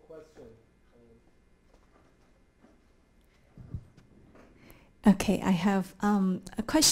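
An elderly woman speaks calmly into a microphone in a large hall.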